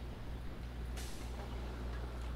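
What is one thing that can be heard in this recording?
A sliding metal door opens.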